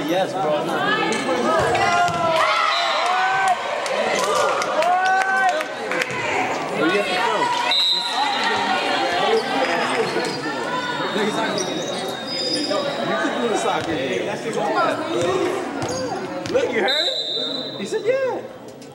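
Young girls shout and cheer loudly in a large echoing hall.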